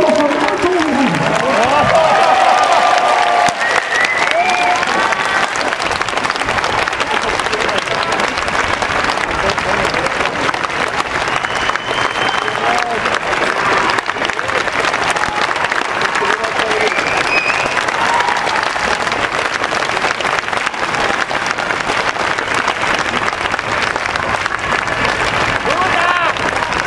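A large outdoor crowd cheers and shouts excitedly.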